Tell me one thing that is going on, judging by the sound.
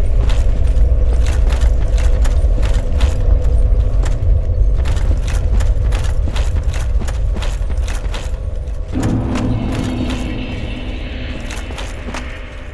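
Armored footsteps crunch steadily over stony ground.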